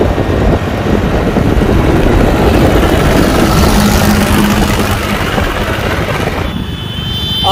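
A tractor engine rumbles close by.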